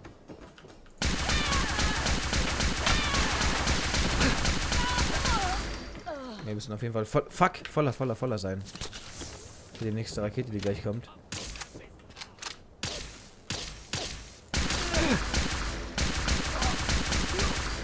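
A rapid-fire gun shoots in long, loud bursts.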